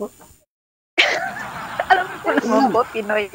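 A young woman laughs and talks over an online call.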